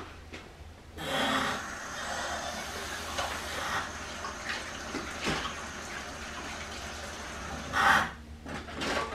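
Water runs from a tap into a sink.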